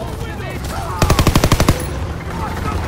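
A submachine gun fires a rapid burst close by.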